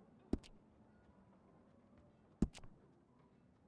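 Sharp menu clicks sound twice.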